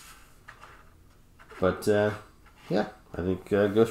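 A plastic stand scrapes lightly across a table.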